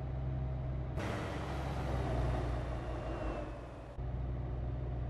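A passing truck rushes by with a loud whoosh.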